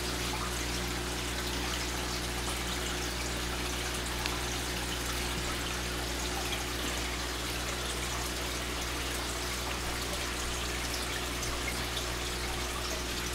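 An aquarium pump hums steadily.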